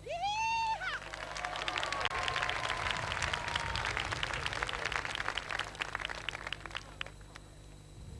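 A crowd applauds and cheers outdoors.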